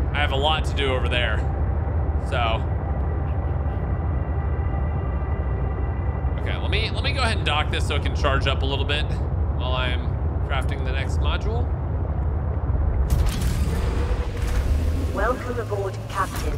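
A vehicle's engine hums low and steady underwater.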